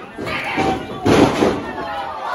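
A wrestler slams down hard onto a ring mat with a loud thud.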